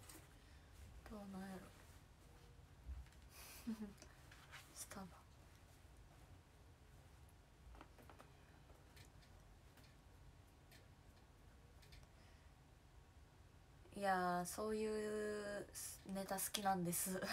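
A young woman speaks close to a microphone, with long pauses.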